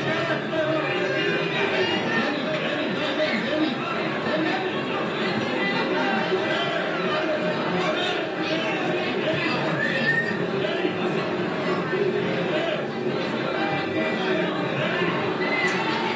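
A large crowd of people chatters and cheers loudly in a noisy hall.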